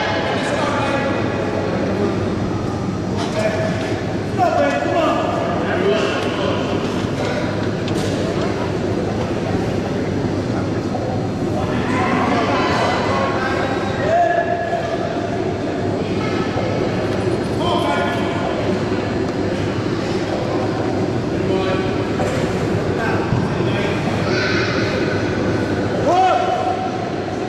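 Several men shout encouragement loudly.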